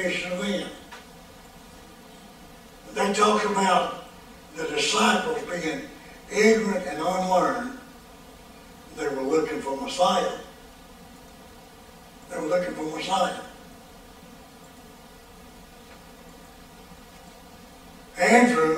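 An elderly man preaches with emphasis through a microphone, in bursts with long pauses.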